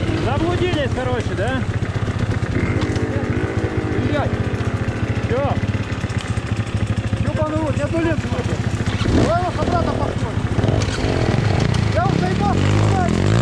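Two-stroke enduro motorcycles idle close by.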